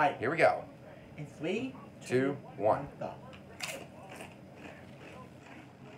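A young man crunches on a chip.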